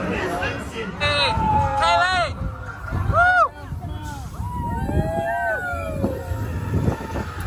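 Riders scream with excitement on a roller coaster.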